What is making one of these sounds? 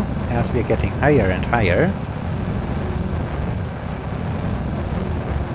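A rocket engine roars with a steady low rumble.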